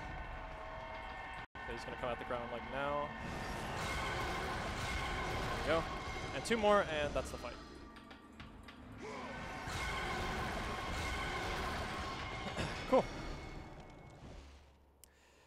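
Video game fighting sounds clash and whoosh.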